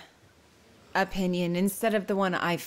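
An older woman speaks calmly, close by.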